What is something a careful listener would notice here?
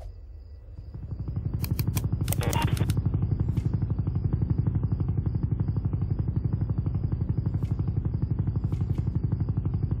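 A game helicopter's rotor chops in a steady, fast beat.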